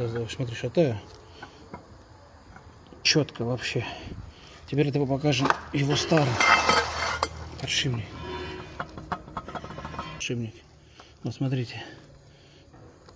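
Metal parts clink and scrape as a hand turns a heavy gear.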